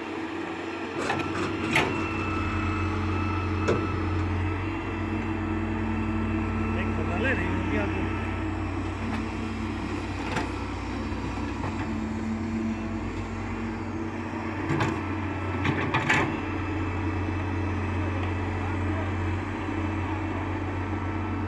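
An excavator bucket scrapes and digs into dry earth.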